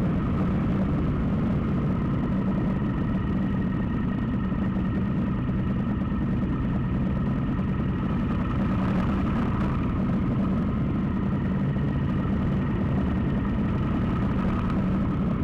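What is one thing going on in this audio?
A motorcycle engine drones steadily close by.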